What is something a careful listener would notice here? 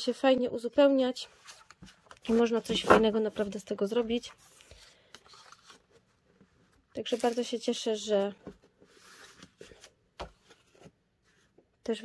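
Paper sheets rustle and slide as they are handled.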